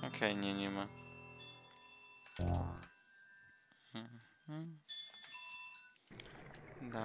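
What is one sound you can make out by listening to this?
Electronic game sound effects chime and beep.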